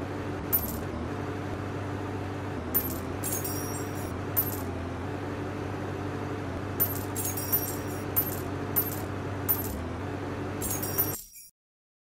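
Short bright chimes ring out now and then as coins are picked up.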